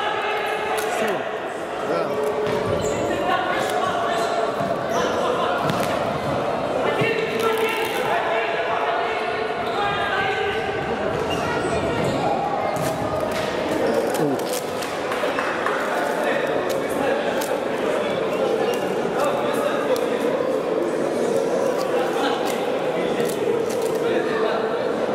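A futsal ball is kicked with sharp thuds in a large echoing hall.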